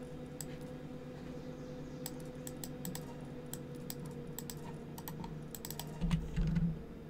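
Soft interface clicks tick quickly, one after another.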